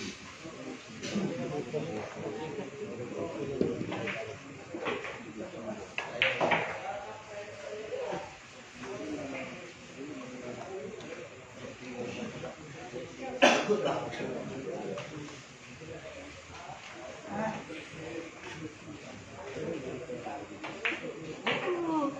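Several young men chat and call out nearby in a room.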